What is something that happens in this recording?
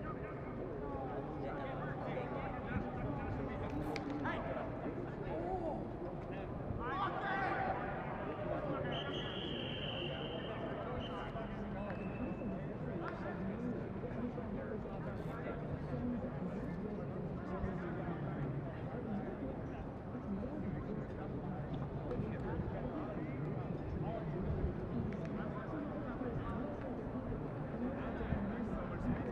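A group of young players talks and calls out nearby, outdoors in the open air.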